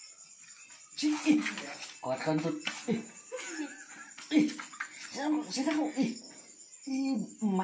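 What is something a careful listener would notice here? A young man talks and laughs with animation close by.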